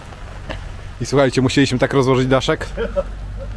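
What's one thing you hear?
A man speaks close by in a lively voice.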